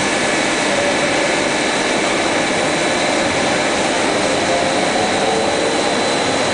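A machine whirs and hums steadily with rollers spinning.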